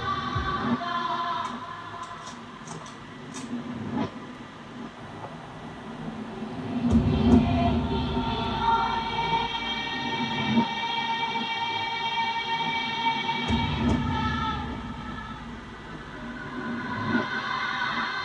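Music with a singing voice plays from a loudspeaker.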